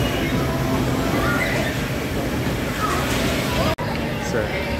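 A fairground ride rumbles as it spins.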